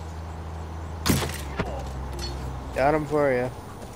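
A bowstring twangs as an arrow is loosed.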